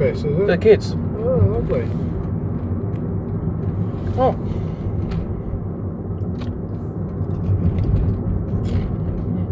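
A car engine and road noise rumble steadily from inside a car.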